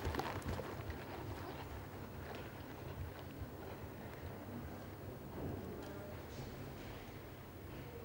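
A horse's hooves thud softly on sand in a large echoing hall.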